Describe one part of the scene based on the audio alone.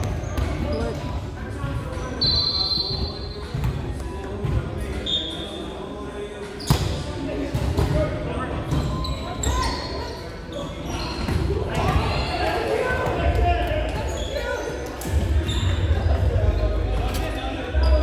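Many voices chatter and call out in a large echoing gym.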